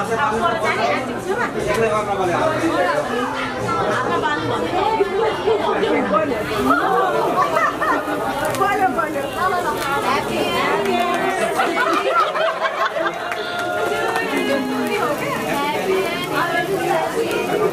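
A group of young men and women sing together nearby.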